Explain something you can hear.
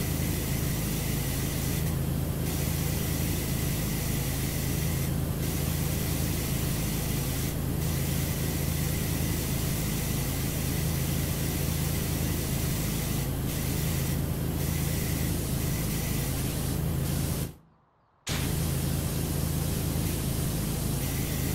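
A pressure washer sprays a steady, hissing jet of water.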